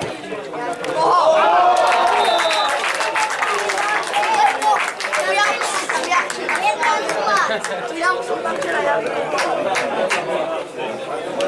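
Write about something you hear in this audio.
Spectators cheer and shout loudly.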